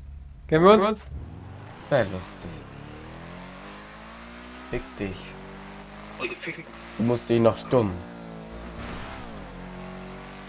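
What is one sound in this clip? A car engine revs and accelerates, rising in pitch as it speeds up.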